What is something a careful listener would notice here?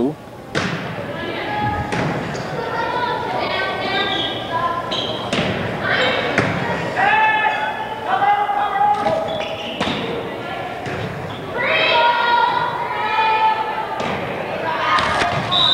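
A volleyball is hit with sharp smacks in a large echoing gym.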